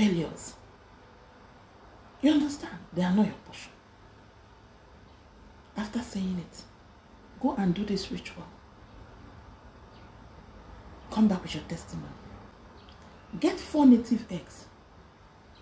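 A woman speaks slowly and dramatically close to a microphone, in short phrases with pauses.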